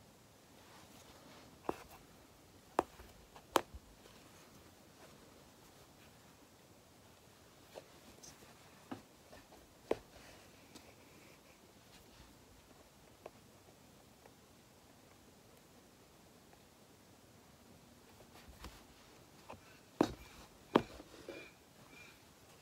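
Thread pulls through taut fabric with soft scratchy rasps.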